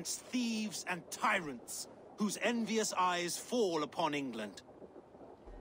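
A man speaks firmly and defiantly, close up.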